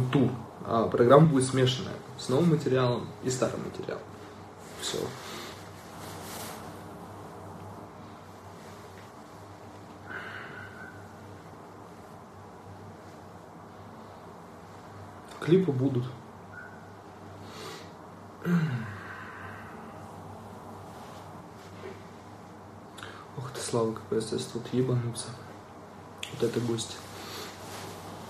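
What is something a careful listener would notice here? A young man talks casually and close to a phone's microphone, with pauses.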